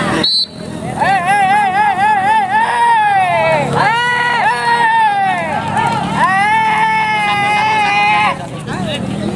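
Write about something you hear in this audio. A man calls out loudly in a long, wavering voice.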